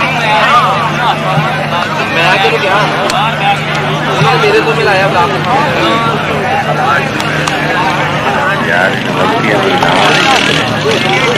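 A large outdoor crowd of men chatters and shouts throughout.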